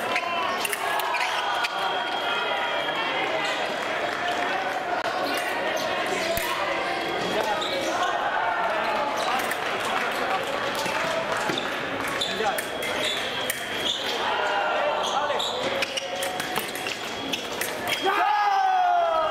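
Fencing blades clash and click against each other.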